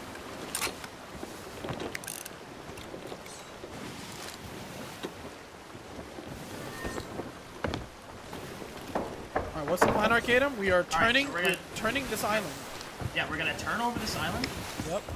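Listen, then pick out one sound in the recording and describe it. Waves wash and churn.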